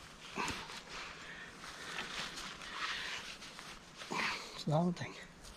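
Lichen and twigs rustle and crackle under hands.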